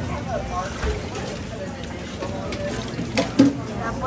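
Water splashes as shrimp are scooped out with a basket.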